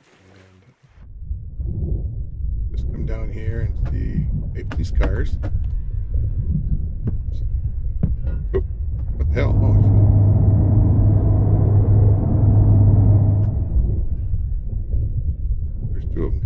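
A muffled underwater rumble drones on.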